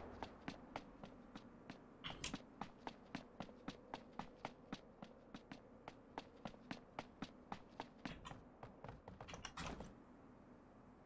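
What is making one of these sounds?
Footsteps tap quickly and evenly on a hard floor.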